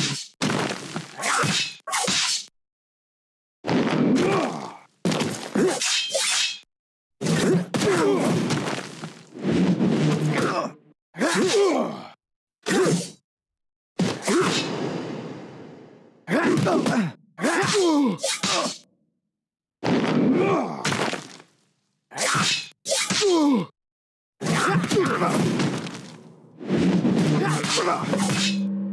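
Swords clash and slash in rapid bursts.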